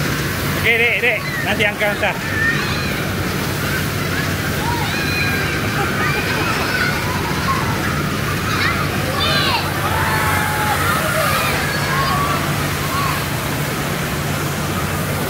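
A fire hose sprays water with a steady rushing hiss.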